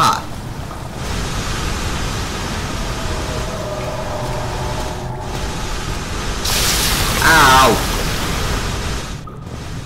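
Steam hisses steadily from a pipe nearby.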